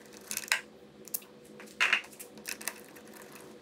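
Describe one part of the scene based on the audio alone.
A plastic hose connector clicks and rattles close by.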